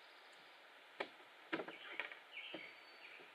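A canoe hull knocks and scrapes on rocky ground.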